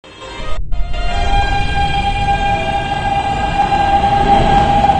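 A subway train pulls away with a whining motor.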